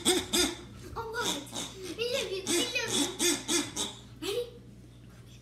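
A young girl talks with animation nearby.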